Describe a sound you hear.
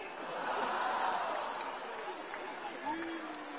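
An audience laughs and cheers loudly in a large hall.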